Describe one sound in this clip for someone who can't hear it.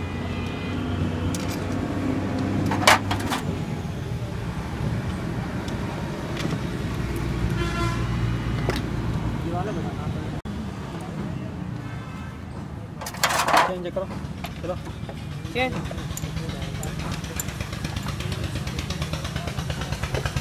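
Metal tools clink and scrape against a motorcycle engine.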